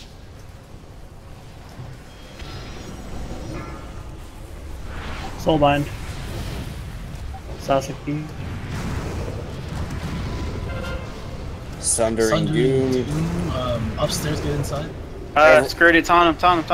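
Magic blasts whoosh and crackle in a fight.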